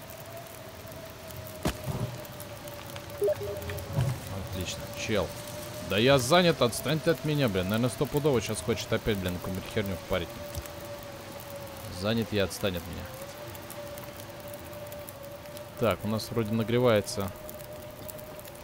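A fire crackles and burns steadily.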